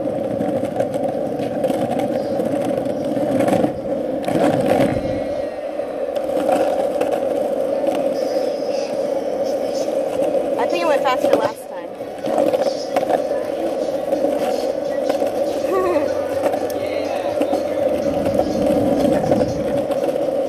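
Skateboard wheels roll and rumble over rough asphalt.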